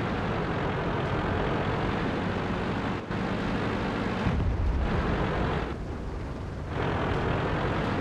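A tank engine rumbles steadily as the tank drives.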